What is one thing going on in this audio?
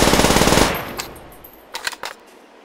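A gun's mechanism clicks as it is reloaded.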